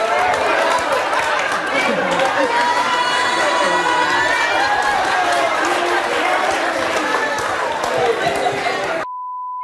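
A large crowd shouts and jeers loudly.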